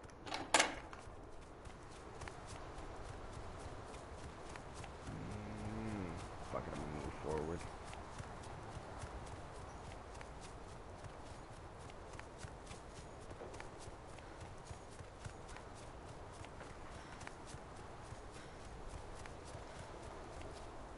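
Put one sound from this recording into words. Footsteps crunch steadily through snow and grass.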